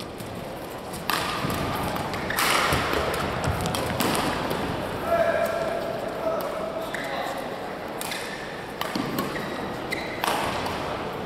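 Sports shoes squeak sharply on a court floor.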